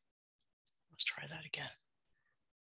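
A woman speaks briefly and quietly through an online call.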